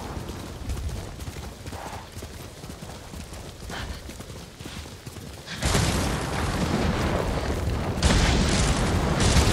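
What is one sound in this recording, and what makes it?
Horse hooves gallop steadily over soft ground.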